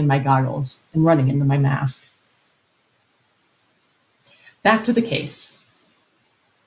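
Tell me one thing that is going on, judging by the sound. A middle-aged woman speaks calmly into a microphone, as on an online call.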